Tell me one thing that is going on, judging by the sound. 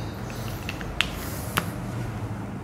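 A marker cap clicks shut.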